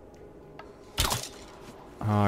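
A bow string snaps as an arrow is shot.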